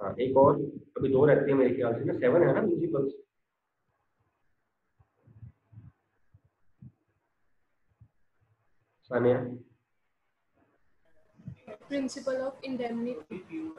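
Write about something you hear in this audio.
A man talks calmly and close by, in pauses.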